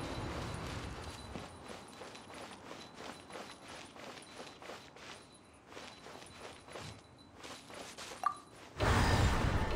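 Quick footsteps patter over hard ground.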